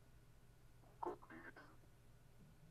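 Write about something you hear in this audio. A young girl speaks softly close to a computer microphone.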